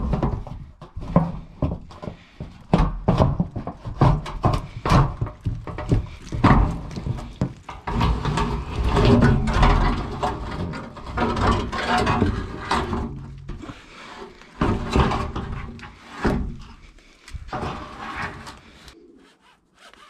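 A hand bumps and scrapes against a metal sheet, close by.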